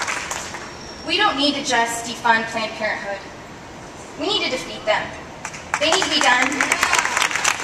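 A young woman speaks calmly through a microphone and loudspeakers.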